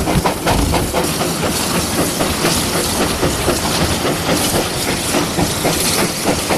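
Rail wagons rumble and clank along the track.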